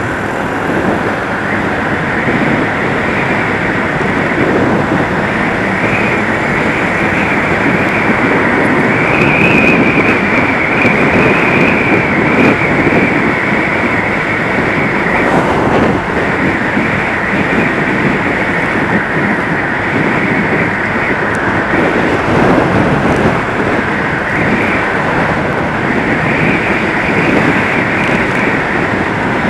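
A motorcycle engine hums steadily.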